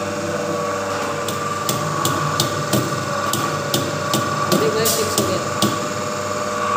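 Pliers click and snap against metal.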